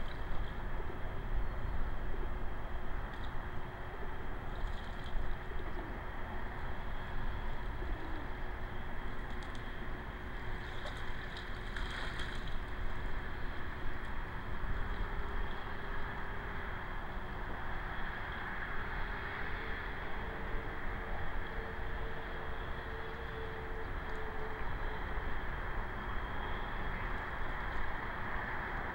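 Wind blows and rumbles across open water.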